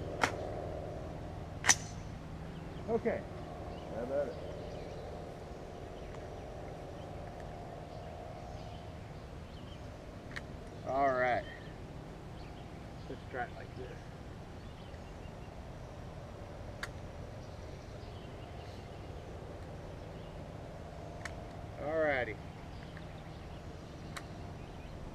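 A rifle fires sharp shots outdoors.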